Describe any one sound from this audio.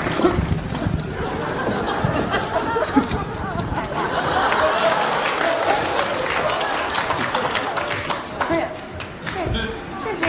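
A large audience laughs and applauds.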